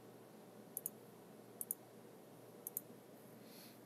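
A computer mouse double-clicks several times.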